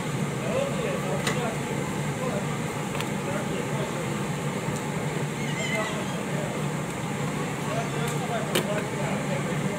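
Metal tongs click against a grill.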